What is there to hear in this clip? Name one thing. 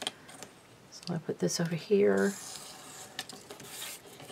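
A pencil scratches along paper.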